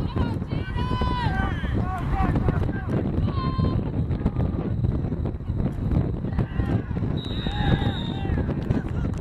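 Spectators shout and cheer from a distance.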